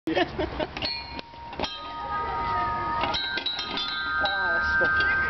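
Metal floor plates ring out with sustained musical tones as a man steps on them.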